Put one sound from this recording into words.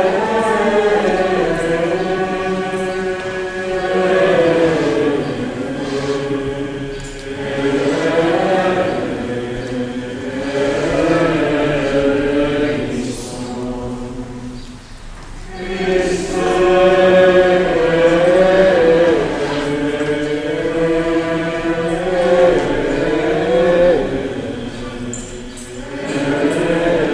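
A choir sings slowly in a large echoing hall.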